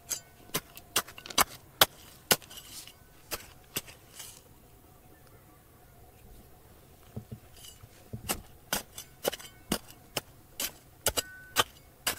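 A small hoe chops into dry, stony soil in sharp knocks.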